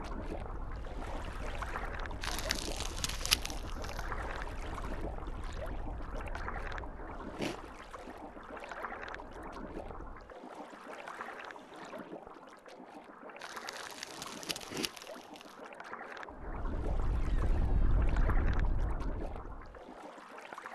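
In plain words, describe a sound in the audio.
Water rushes and bubbles in a muffled underwater hum.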